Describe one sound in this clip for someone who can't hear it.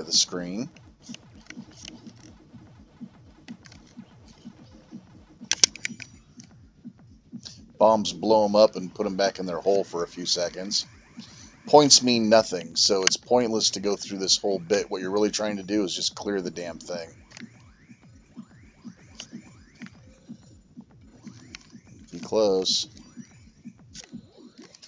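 Electronic arcade game bleeps and chomping blips play in quick succession.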